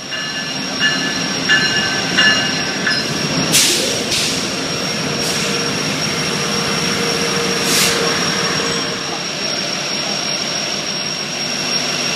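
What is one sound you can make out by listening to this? A passenger train rolls slowly past on the rails.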